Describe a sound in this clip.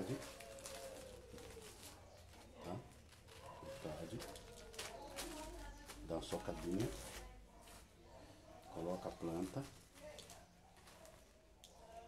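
Hands rustle and snap a small plant cutting.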